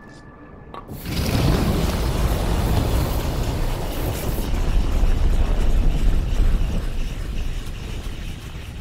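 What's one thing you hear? A deep, menacing rumble swells and roars.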